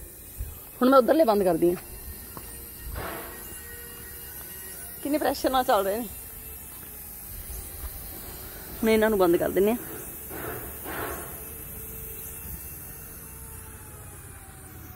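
A lawn sprinkler sprays water with a soft steady hiss.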